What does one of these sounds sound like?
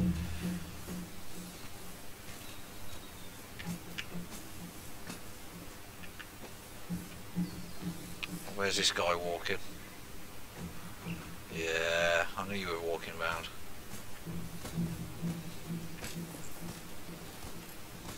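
Footsteps rustle softly through tall dry grass.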